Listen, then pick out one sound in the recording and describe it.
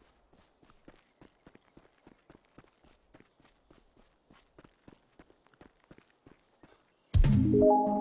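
Footsteps run quickly over dry dirt and grass.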